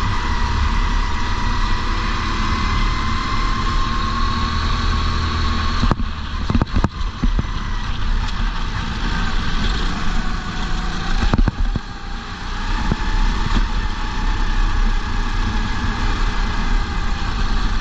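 A racing kart engine screams at full throttle, its pitch rising and dropping as it lifts off for corners.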